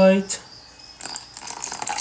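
Water pours into a bowl.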